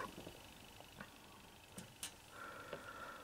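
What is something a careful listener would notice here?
Fingers handle a small plastic figure with faint clicks.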